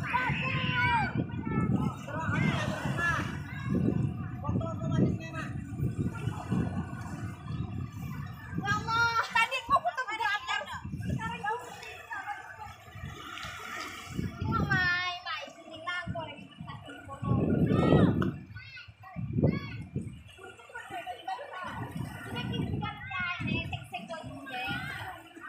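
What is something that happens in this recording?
Young women chat casually nearby.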